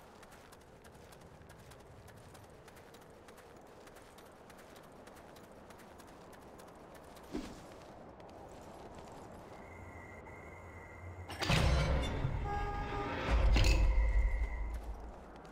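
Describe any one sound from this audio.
Footsteps crunch on snow.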